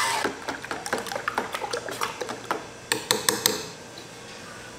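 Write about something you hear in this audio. A spoon clinks and scrapes against a metal tray.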